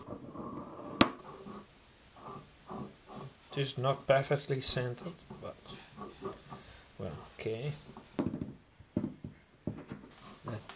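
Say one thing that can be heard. Heavy metal parts clink and knock together on a wooden bench.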